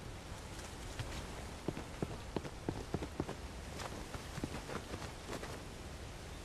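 Footsteps tap quickly on roof tiles.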